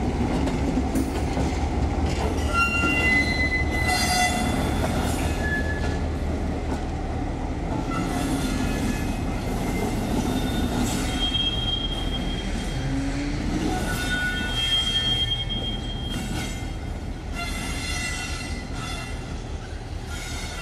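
Train wheels squeal and screech on the rails.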